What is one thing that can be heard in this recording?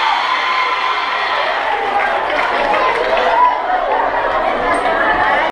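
A crowd of children and adults chatters and shouts in a large echoing hall.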